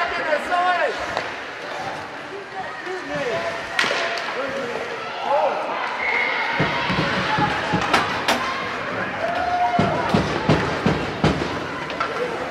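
Hockey sticks clack against the puck and the ice.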